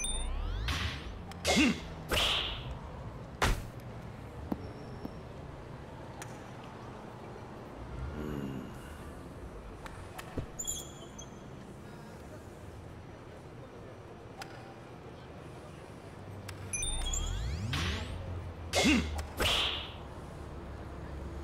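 A golf club whooshes through the air.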